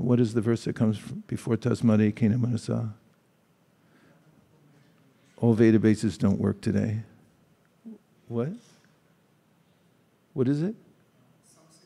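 A middle-aged man speaks calmly and slowly into a microphone, with pauses.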